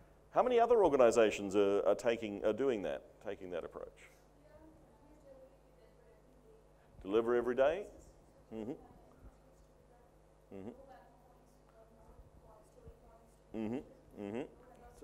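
A middle-aged man speaks through a microphone in bursts with pauses, heard over a loudspeaker in a hall.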